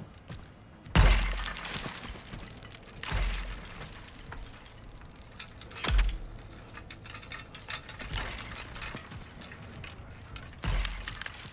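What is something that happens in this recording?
A wooden door bangs heavily as it is pushed open.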